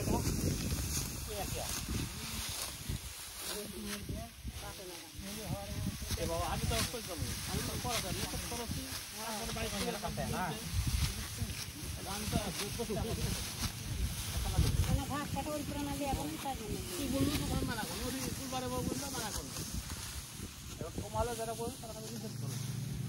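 Wind blusters outdoors across a microphone.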